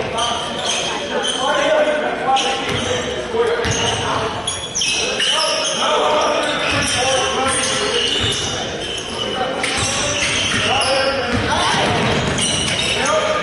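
A basketball bounces on a wooden floor as a player dribbles.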